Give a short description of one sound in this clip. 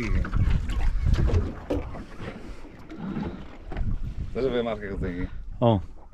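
Wind blusters outdoors on open water.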